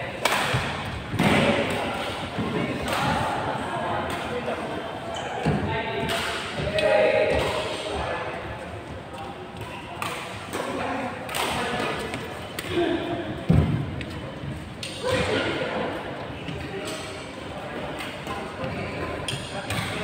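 Shuttlecocks are struck with sharp racket pops in a large echoing hall.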